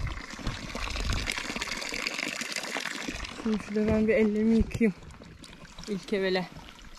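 Water splashes steadily from a spout onto the ground.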